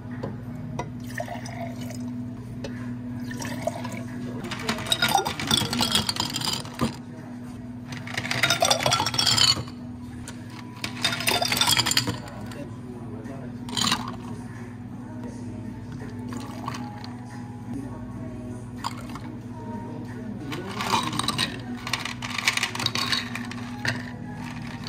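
A coffee machine hums steadily.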